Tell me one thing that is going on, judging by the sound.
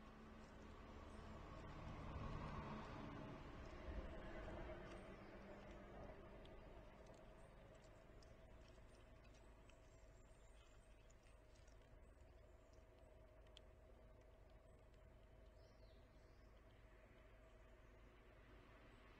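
A squirrel nibbles seeds close by.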